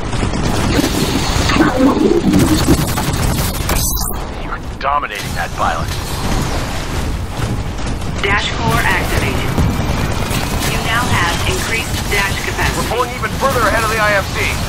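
Heavy gunfire booms and rattles in rapid bursts.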